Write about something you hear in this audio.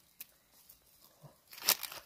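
A stick pokes and scrapes through ash.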